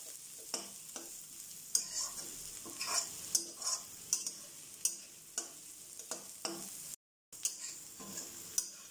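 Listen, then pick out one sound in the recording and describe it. Food sizzles softly in a hot wok.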